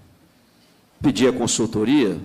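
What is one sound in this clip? A man speaks firmly and clearly through a microphone.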